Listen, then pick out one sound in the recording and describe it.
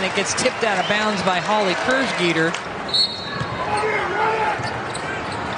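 Players' sneakers squeak on the court.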